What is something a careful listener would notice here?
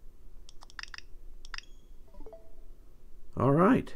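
A handheld game console gives a short chime as its menu opens.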